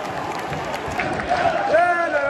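A young man shouts close by.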